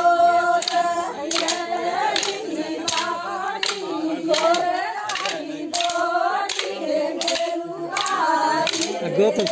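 Wooden sticks clack together in a steady rhythm.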